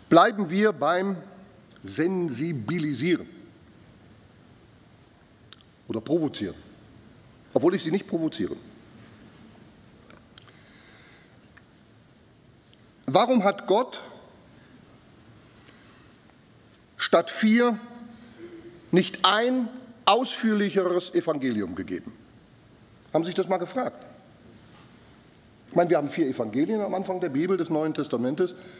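A man speaks with animation through a microphone, with long pauses.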